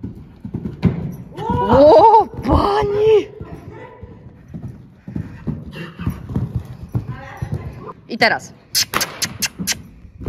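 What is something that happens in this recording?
A horse's hooves thud on soft sand as it canters.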